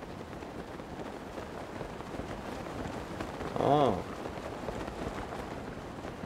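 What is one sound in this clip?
A man talks quietly into a microphone.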